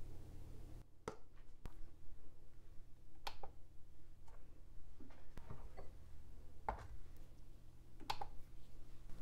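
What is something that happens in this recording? A button on a scale clicks.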